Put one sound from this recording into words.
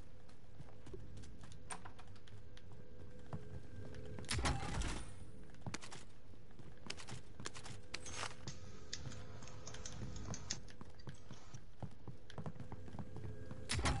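Footsteps thud quickly across wooden floors and stairs.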